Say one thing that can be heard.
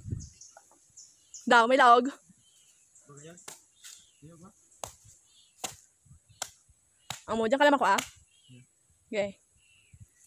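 A machete chops into a coconut with sharp knocks.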